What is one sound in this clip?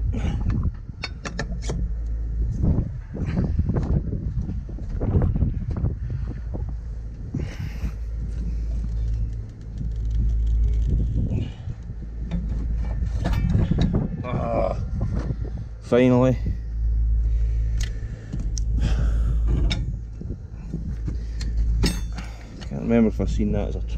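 Metal tools clink and scrape against a wheel rim.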